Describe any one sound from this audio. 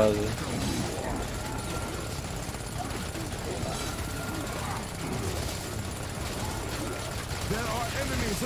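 Game battle sounds clash and rumble throughout.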